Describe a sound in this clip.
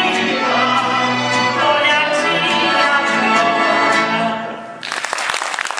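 A woman sings loudly into a microphone.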